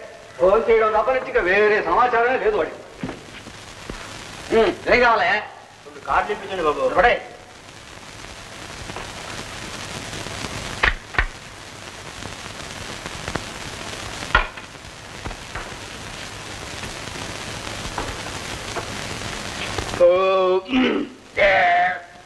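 A man speaks loudly and with animation.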